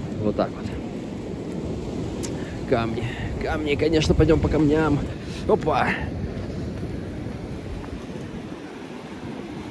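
Waves wash against rocks along the shore.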